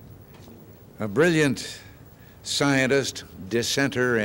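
An elderly man speaks calmly into a microphone over loudspeakers.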